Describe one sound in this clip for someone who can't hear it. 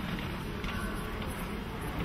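A violin plays softly.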